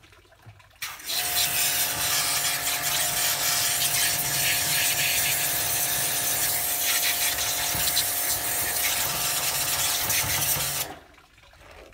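A jet of water hisses and sprays against a slipper.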